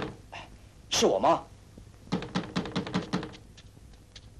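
A young man speaks sharply, close by.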